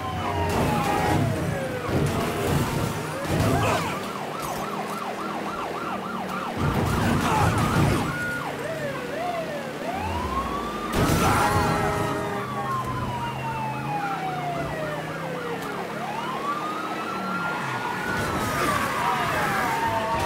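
A police siren wails and warbles.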